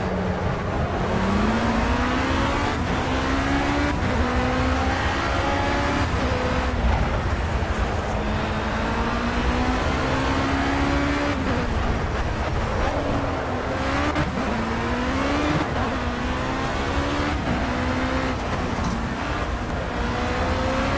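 Tyres rumble over the track.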